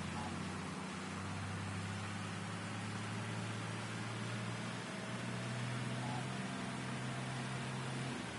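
A truck engine rumbles steadily, shifting pitch slightly.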